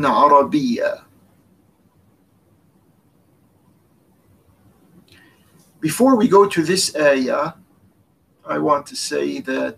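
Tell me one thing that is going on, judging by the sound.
An older man speaks calmly and thoughtfully, close to a microphone, with pauses.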